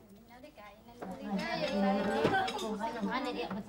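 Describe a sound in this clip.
Women chat with animation.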